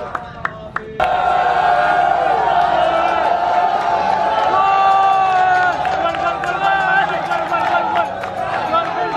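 A crowd of young men cheers and shouts with excitement.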